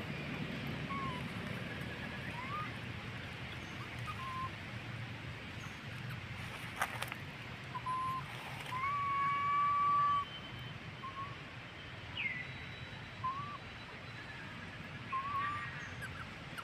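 A young monkey gives short, high squeaks now and then.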